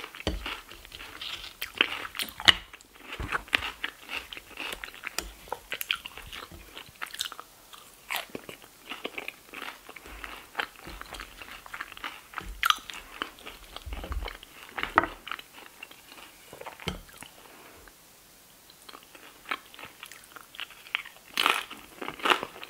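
A spoon scrapes and clinks against a plate close up.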